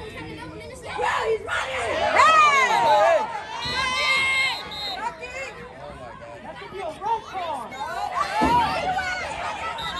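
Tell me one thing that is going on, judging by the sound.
A man cheers and shouts excitedly close by.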